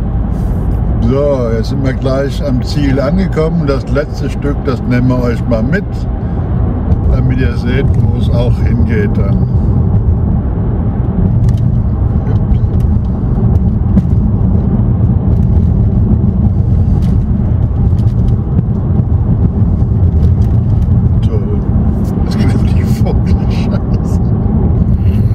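A car engine hums steadily with road rumble, heard from inside the car.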